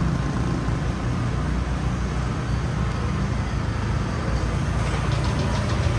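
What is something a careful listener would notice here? A truck engine rumbles slowly close by.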